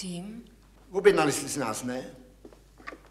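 A middle-aged man speaks loudly.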